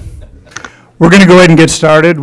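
A man speaks loudly over a microphone in a large room.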